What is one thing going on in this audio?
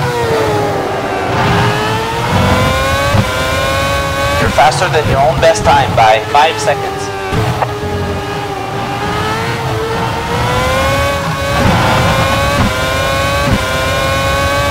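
A racing car engine screams at high revs, its pitch climbing and dropping sharply with each gear change.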